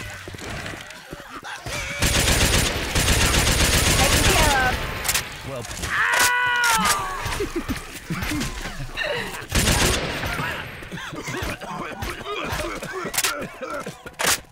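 Zombies shriek and groan.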